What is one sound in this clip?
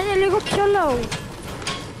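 A pickaxe clangs against a car's metal body.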